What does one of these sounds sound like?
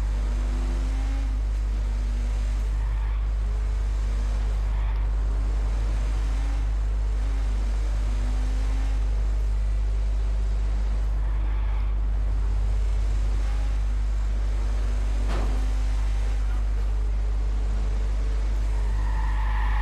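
A car engine roars steadily at high speed.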